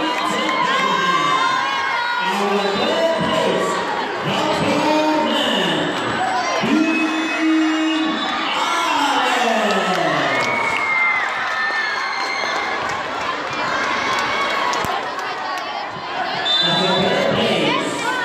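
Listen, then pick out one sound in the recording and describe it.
A large crowd cheers and screams in a big echoing hall.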